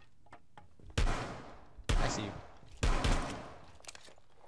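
Pistol shots ring out sharply, one after another.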